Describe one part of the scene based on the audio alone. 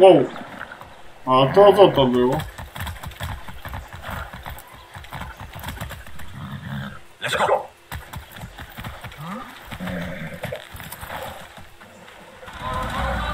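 Horse hooves clop on a dirt road.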